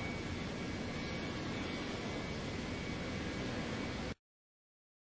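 A jet airliner's engines roar steadily as it taxis.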